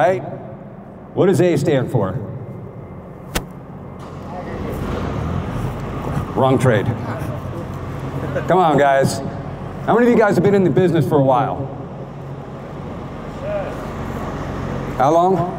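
A man speaks with animation into a microphone over loudspeakers, echoing in a large hall.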